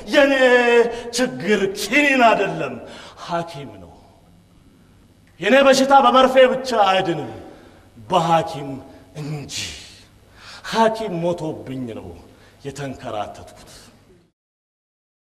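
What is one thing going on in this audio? A middle-aged man speaks loudly and theatrically in drawn-out bursts.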